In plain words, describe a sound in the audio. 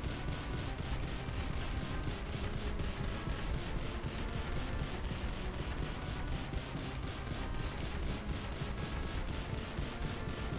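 Game sound effects of attacks and hits ring out.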